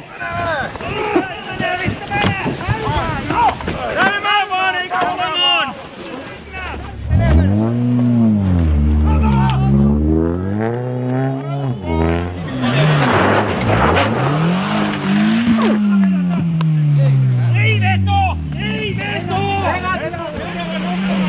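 Men shout and call out close by.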